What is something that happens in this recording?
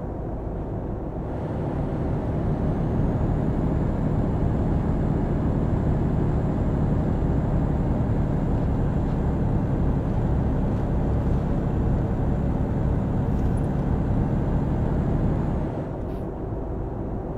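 Tyres roll over the road with a low drone.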